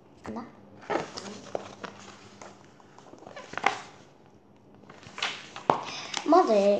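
Paper pages rustle as a book is handled.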